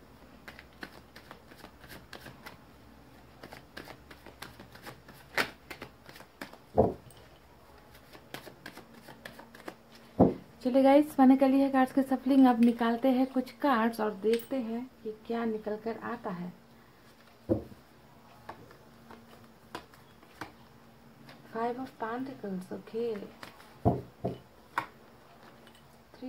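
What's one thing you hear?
Playing cards flick and rustle as they are shuffled by hand.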